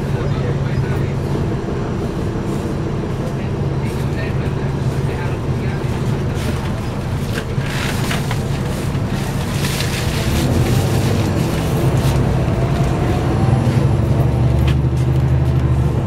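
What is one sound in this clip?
Traffic passes by outside the bus.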